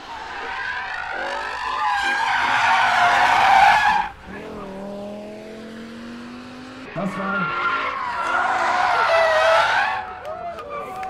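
Tyres squeal loudly as a car slides around a bend.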